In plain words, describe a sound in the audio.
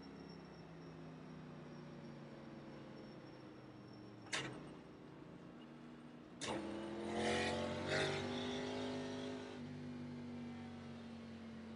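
A race car engine drones steadily from inside the car.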